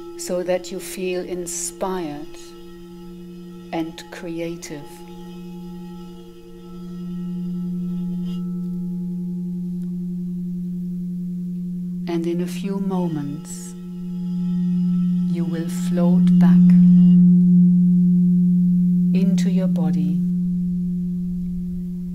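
Crystal singing bowls ring with a steady, deep hum that swells and fades.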